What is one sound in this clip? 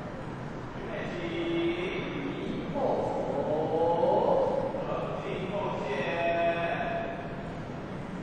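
A crowd's voices murmur in a large echoing hall.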